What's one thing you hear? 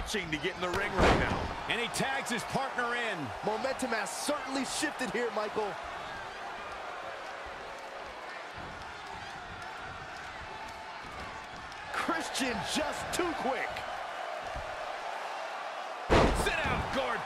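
A body slams hard onto a ring mat with a heavy thud.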